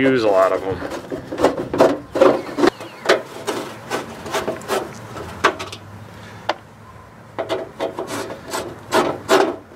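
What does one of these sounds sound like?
A screwdriver clicks and scrapes against metal.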